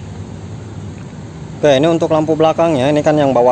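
A small bulb clicks as it is pulled from its plastic socket.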